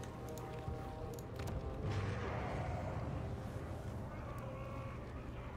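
Short game interface clicks sound as menus open.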